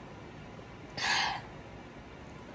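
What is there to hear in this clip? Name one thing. A young woman lets out a loud, breathy sigh.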